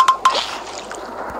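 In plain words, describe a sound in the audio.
A short electronic game chime rings twice.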